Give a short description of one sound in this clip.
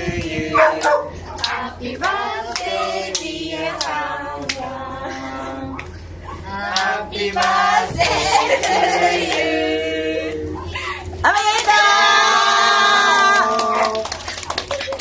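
Young women sing together with cheerful voices.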